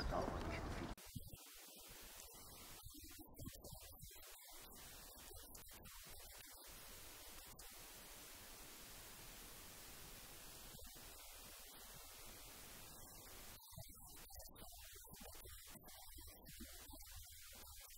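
An elderly man speaks calmly from close by.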